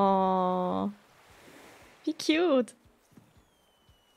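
A fishing float plops into water.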